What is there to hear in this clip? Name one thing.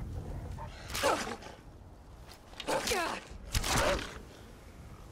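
A wolf snarls and growls.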